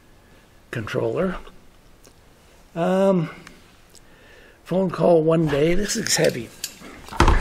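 An elderly man speaks calmly into a nearby microphone, in short bursts with pauses.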